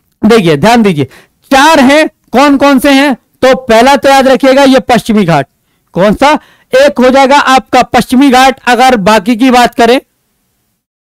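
A man speaks with animation through a clip-on microphone, close by.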